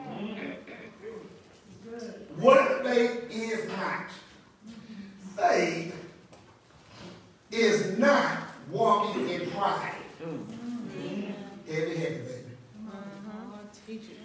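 A man preaches with animation into a microphone, his voice echoing in a room.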